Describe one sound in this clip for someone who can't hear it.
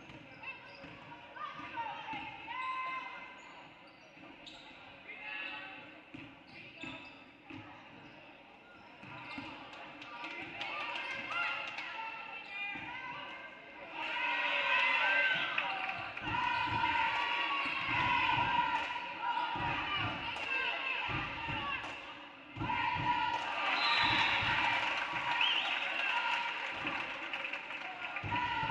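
Spectators chatter and call out in a large echoing gym.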